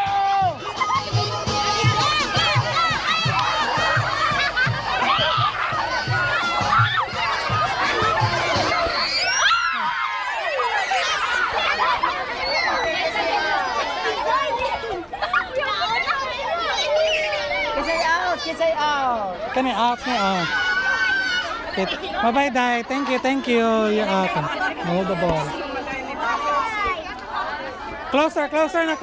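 A crowd of children and women chatter and shout excitedly outdoors.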